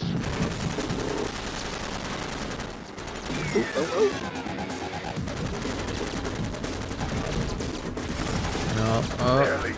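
A buggy engine roars steadily.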